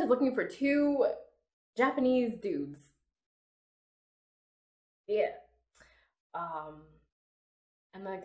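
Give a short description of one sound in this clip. A young woman speaks with animation, close to a microphone, in short bursts.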